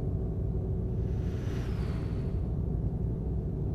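An oncoming truck rushes past.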